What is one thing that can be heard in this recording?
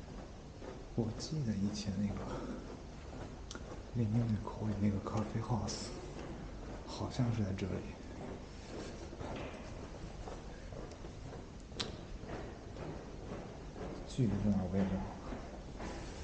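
A young man speaks calmly close to the microphone.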